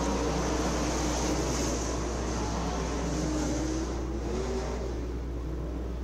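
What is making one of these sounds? Race car engines roar around a dirt track in the distance.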